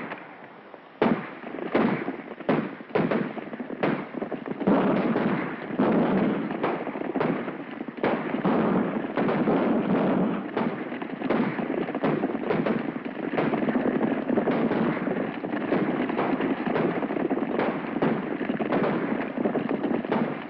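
Gunshots crack sharply and echo.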